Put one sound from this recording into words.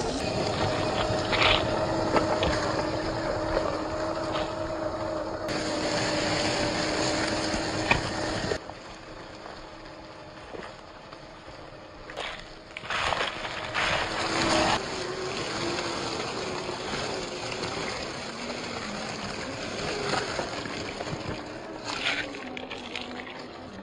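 A small electric motor whines as a toy truck drives.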